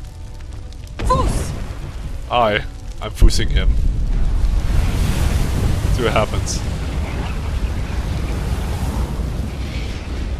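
Fire roars and rumbles in heavy blasts.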